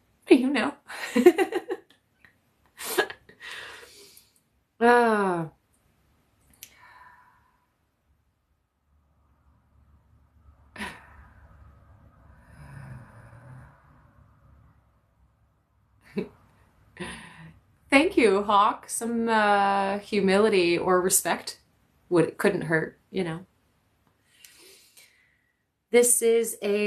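A young woman talks calmly and warmly close by, with pauses.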